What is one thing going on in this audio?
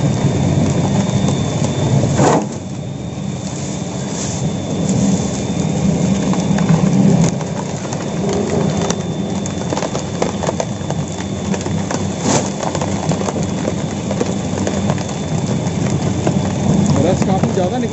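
A sugarcane crusher's heavy steel rollers grind and crush sugarcane.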